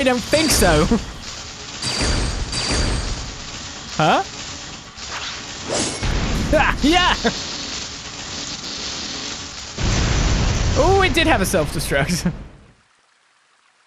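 Loud crashes and blasts of a game battle rumble on, then stop.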